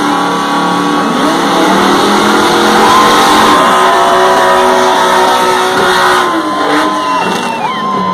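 Tyres squeal on the asphalt during a burnout.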